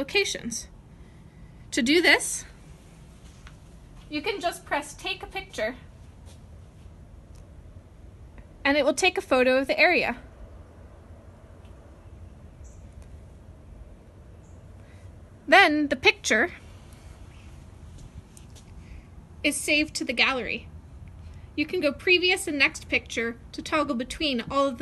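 A woman speaks in short bursts close by.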